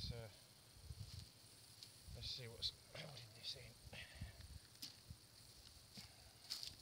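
Dry twigs and brush snap and rustle as a man pulls at them.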